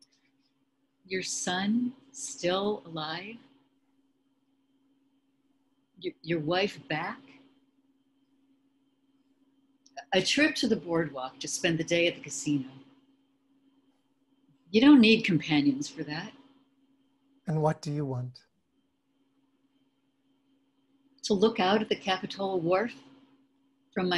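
An elderly woman talks calmly over an online call, in short bursts with pauses.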